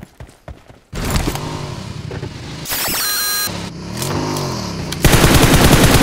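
A motorbike engine roars and revs.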